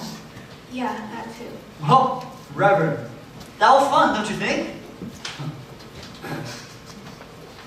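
A young man speaks loudly in a room with some echo.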